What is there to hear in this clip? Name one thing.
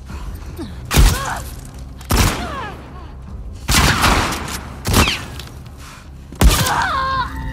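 Gunshots ring out sharply several times.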